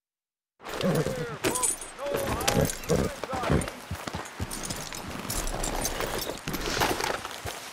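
A horse's hooves thud on grass.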